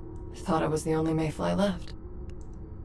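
A young woman speaks calmly.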